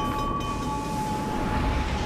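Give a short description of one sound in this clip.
Shells explode on a distant ship.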